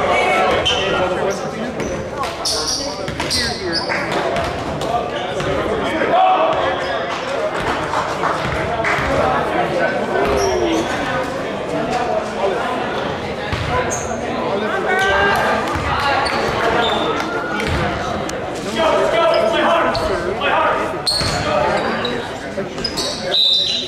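A crowd of young people chatter and shout in a large echoing gym.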